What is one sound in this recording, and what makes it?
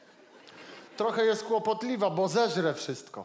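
A man reads aloud through a microphone.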